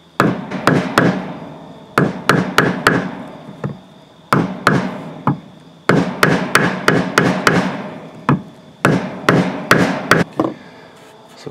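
A mallet taps sharply on a metal punch against wood.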